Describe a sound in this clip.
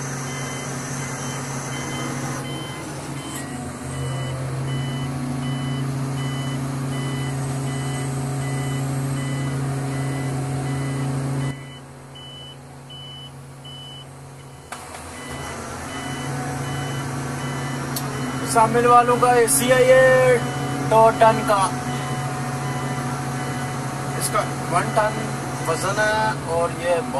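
A crane engine hums steadily close by.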